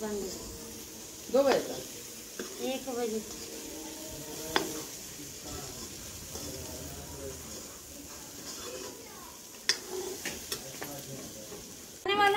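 A spoon scrapes and clinks against a metal pan.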